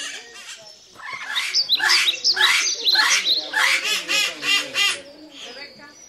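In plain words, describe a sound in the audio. Parrots squawk loudly and repeatedly.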